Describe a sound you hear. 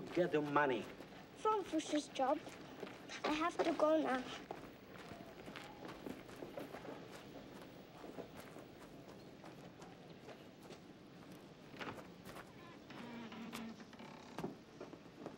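A girl's footsteps crunch on gravel.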